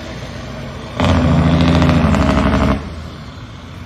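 A heavy truck engine rumbles loudly as a truck drives past.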